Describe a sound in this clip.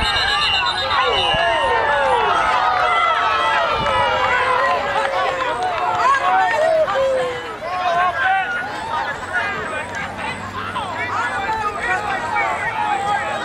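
A crowd of adults and children shouts and cheers loudly outdoors.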